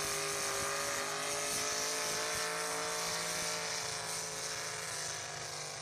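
A truck engine roars loudly at full throttle.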